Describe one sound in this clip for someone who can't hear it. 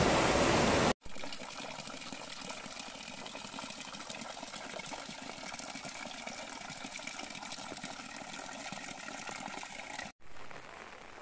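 A thin stream of water trickles and patters onto stones.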